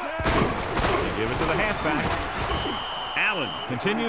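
Football players collide in a tackle with a thud.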